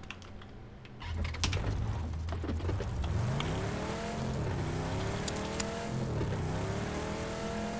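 A car engine starts and revs up and down.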